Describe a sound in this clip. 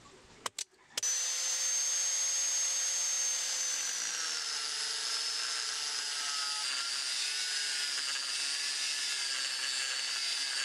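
An angle grinder whines steadily as it cuts through a metal pipe.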